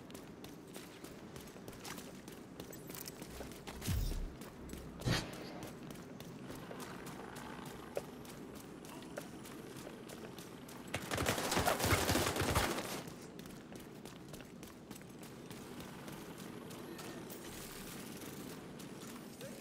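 Footsteps walk steadily over pavement and through grass.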